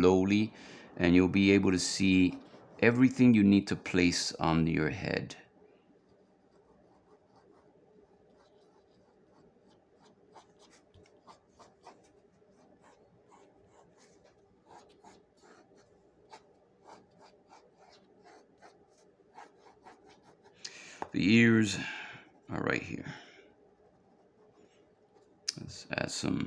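A pen scratches softly across paper in short strokes.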